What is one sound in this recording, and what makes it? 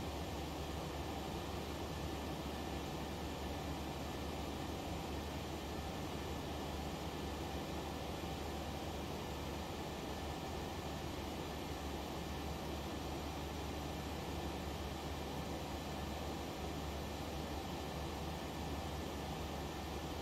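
Jet engines drone steadily in flight.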